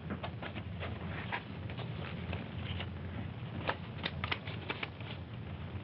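Paper rustles as a gift is unwrapped.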